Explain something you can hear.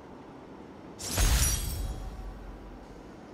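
A bright whooshing chime rings out and fades.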